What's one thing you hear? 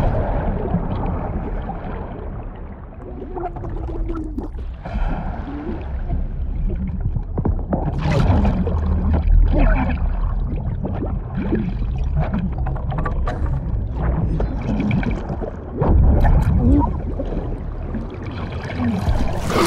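Water rushes and bubbles underwater.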